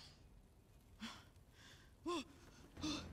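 A young woman moans softly close by.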